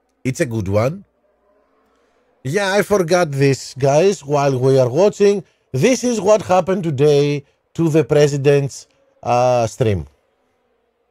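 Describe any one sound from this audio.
A middle-aged man speaks with animation into a headset microphone.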